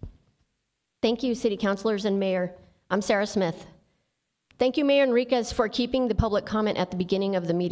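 A woman reads out calmly into a microphone, close by.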